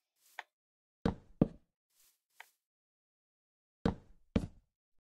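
Wooden blocks thud down one after another.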